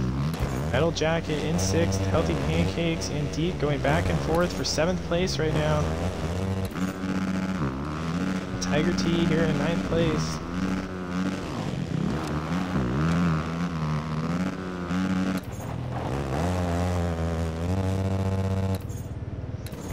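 Dirt bike engines whine and rev, rising and falling in pitch.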